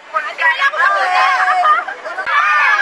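A young woman speaks excitedly close by.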